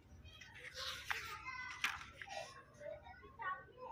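Paper pages rustle and flip as a page is turned.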